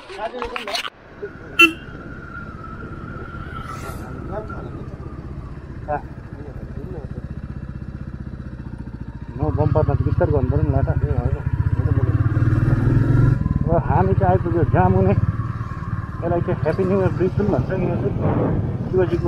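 A single-cylinder Royal Enfield motorcycle thumps along a paved road.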